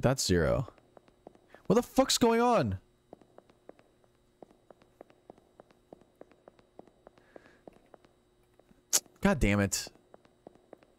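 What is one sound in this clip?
A young man speaks loudly and with animation into a close microphone.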